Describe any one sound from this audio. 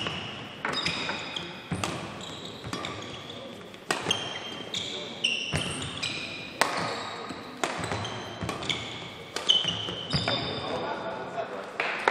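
Rackets smack a shuttlecock back and forth in a fast rally.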